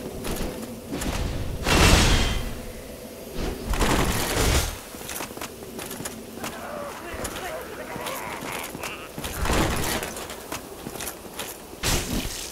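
Swords swing and clang against armour.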